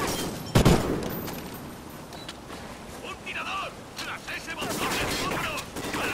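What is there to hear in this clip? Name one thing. A rifle clicks and clacks as it is reloaded.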